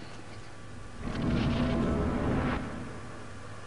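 A soft rushing whoosh swells and fades.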